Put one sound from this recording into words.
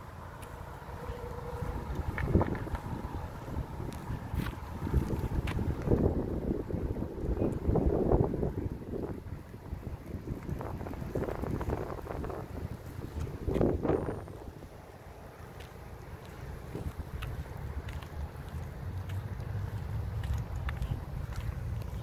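An electric car rolls slowly across asphalt with a soft tyre hum.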